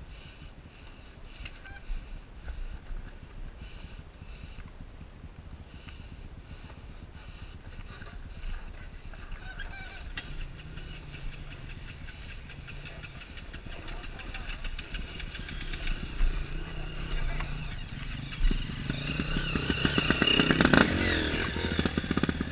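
A dirt bike engine runs at low speed.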